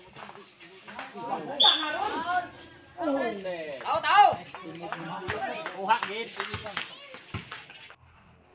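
Spectators shout and cheer loudly nearby outdoors.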